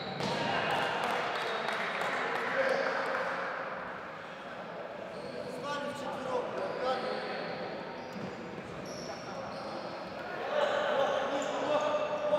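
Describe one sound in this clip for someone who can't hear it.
Young men shout to each other, echoing in a large hall.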